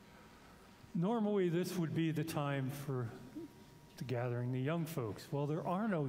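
A man speaks calmly and clearly through a microphone in a large, echoing room.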